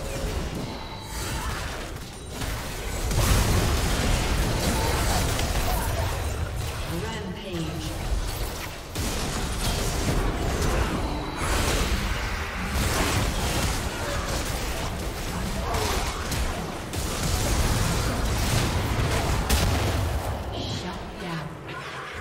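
Spell blasts and hits crash again and again in a fast video game battle.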